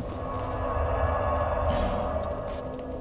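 A fire crackles softly close by.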